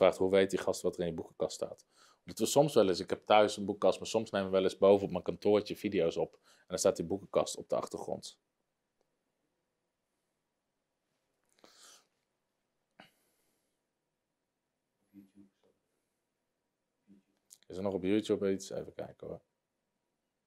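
A man speaks calmly and close to a microphone, in pauses.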